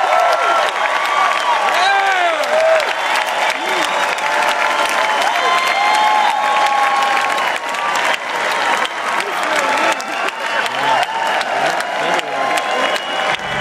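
A large crowd cheers and applauds loudly in a big echoing arena.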